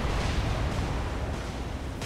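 A shell splashes into the water.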